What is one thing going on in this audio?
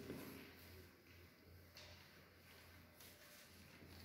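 A paper rustles as it is handled.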